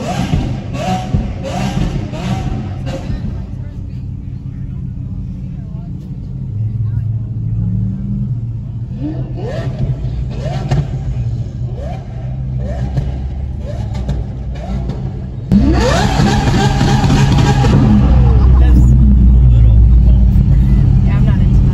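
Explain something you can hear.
A car engine rumbles deeply close by.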